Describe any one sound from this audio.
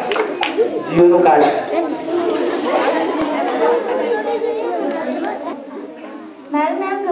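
A young man speaks cheerfully into a microphone.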